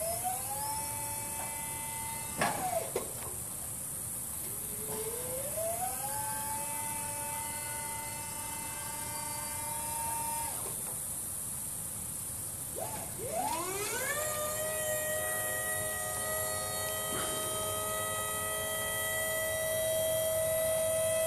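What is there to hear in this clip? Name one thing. An electric hydraulic pump whines, rising in pitch and holding steady, stopping and starting again several times.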